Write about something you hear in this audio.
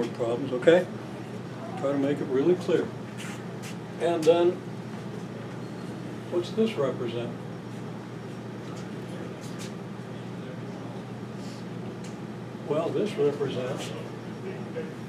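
An elderly man speaks calmly, lecturing, with pauses.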